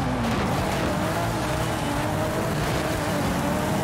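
Tyres screech on tarmac as a car slides through a bend.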